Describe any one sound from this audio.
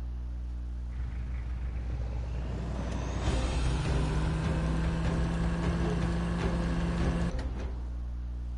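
A game vehicle's engine roars as it drives.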